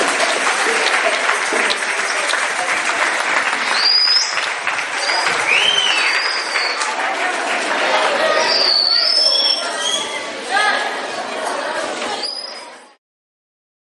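A large crowd of children chatters and shouts loudly in an echoing hall.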